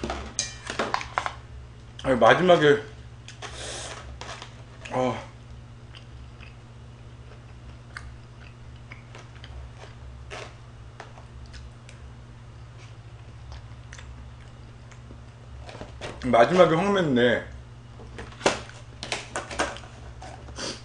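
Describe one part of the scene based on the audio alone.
A metal spoon clinks and scrapes against a dish.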